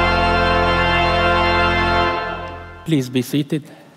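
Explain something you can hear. A choir sings in a large hall and the music fades out.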